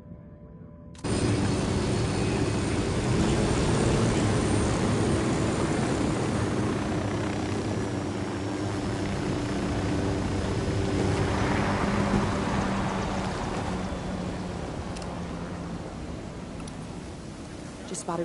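A helicopter's rotors thump and roar steadily close by.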